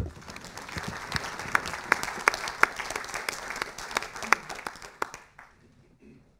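An audience applauds in a large hall.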